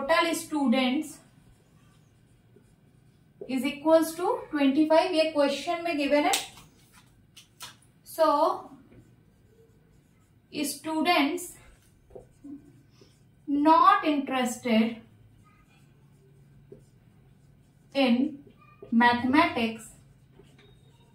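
A young woman explains calmly, close by.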